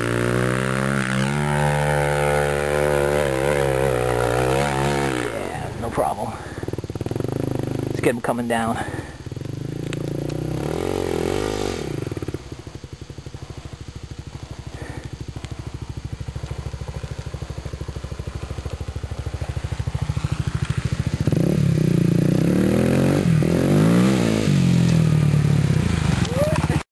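A dirt bike engine revs hard and whines as it climbs.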